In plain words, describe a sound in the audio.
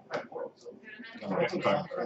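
Plastic tokens click together on a table.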